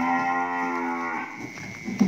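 Footsteps shuffle on dry straw.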